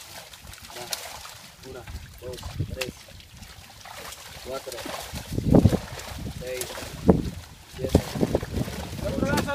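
Water splashes as men wade and haul a sack.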